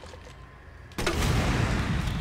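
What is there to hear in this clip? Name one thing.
A gun fires a loud blast.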